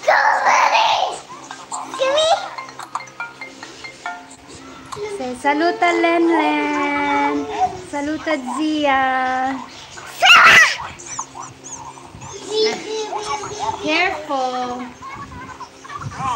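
A little girl laughs and squeals close by.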